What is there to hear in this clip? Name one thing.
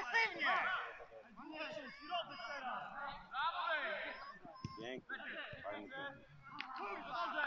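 Men shout to each other across an open field at a distance.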